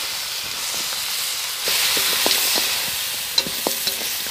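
A wood fire crackles and hisses.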